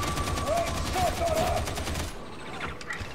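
Automatic gunfire rattles rapidly.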